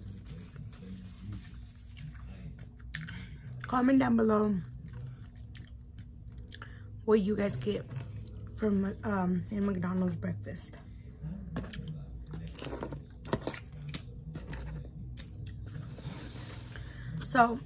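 A young woman chews food with wet, smacking sounds close to a microphone.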